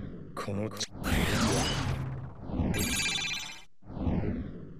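A bright magical shimmer swells and sparkles.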